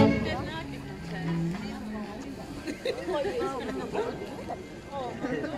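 Several young adults chat and talk over each other nearby.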